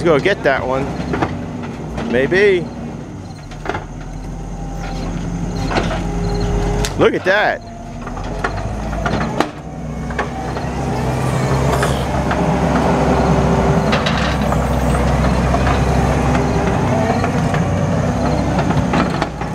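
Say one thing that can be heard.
A tracked loader's diesel engine rumbles and revs nearby.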